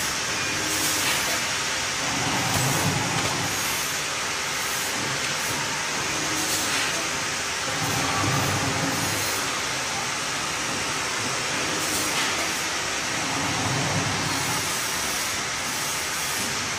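A packing machine's sealing jaws clack in a regular rhythm.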